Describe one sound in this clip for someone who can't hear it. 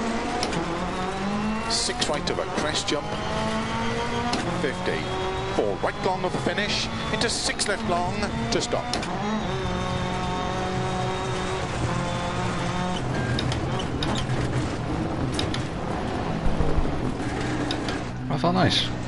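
A rally car engine roars and revs as it races along.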